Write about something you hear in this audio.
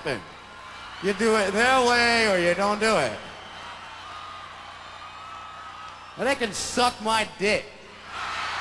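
A young man sings loudly into a microphone, heard through loudspeakers.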